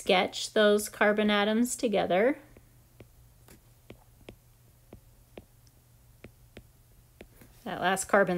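A stylus taps lightly on a tablet.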